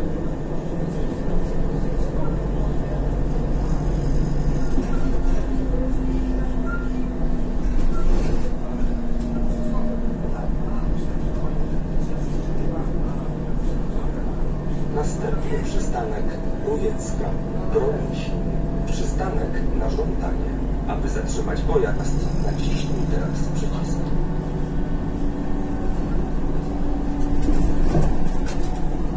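A bus engine hums and drones steadily as the bus drives along.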